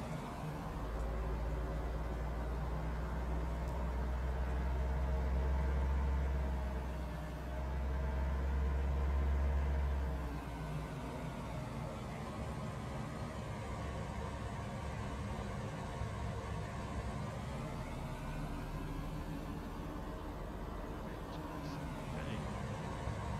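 A car engine hums steadily as a vehicle drives along, then slows down.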